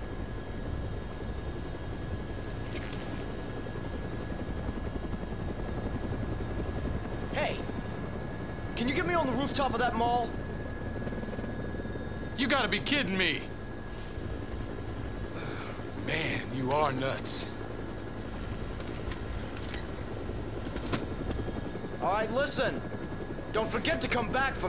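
A helicopter engine and rotor drone steadily.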